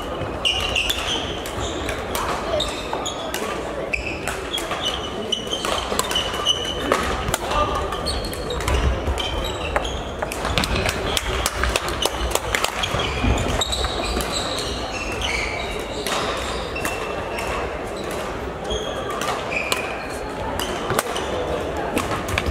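Shoes squeak on the hard floor.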